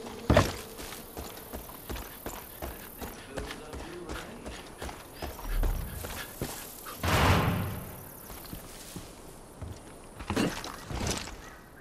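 Footsteps crunch on dirt and grass at a steady walking pace.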